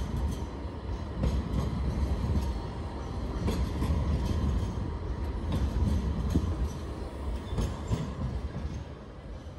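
A tram rumbles past close by.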